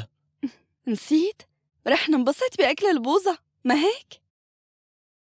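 A young woman speaks in surprise up close.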